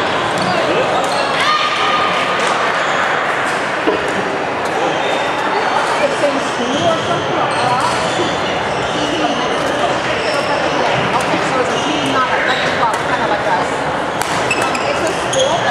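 Many voices chatter and echo in a large hall.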